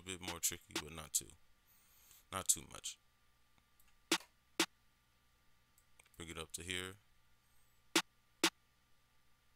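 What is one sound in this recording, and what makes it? Music plays in short bursts of pitched tones and sharp drum hits, with pauses between them.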